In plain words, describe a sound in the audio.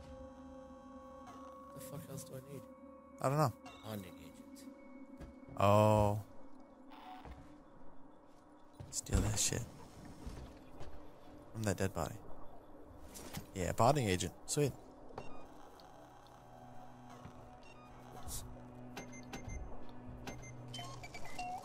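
Short electronic beeps and clicks sound as a menu is moved through.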